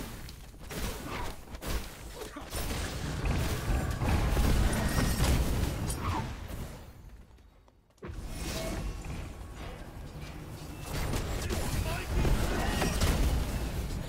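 Fiery spell blasts burst and crackle in a game.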